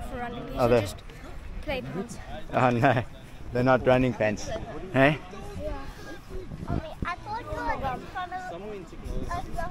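A boy speaks with animation close by.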